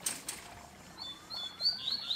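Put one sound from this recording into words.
A caged bird chirps with short, high calls.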